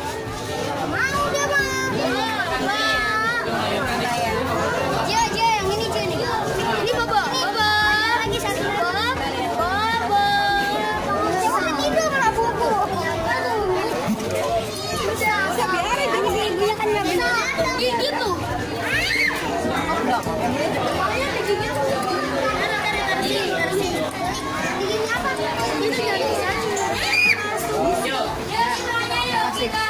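Many young children chatter and exclaim excitedly close by.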